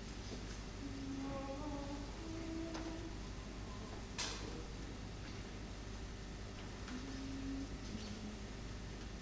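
A men's choir sings a few soft, held notes.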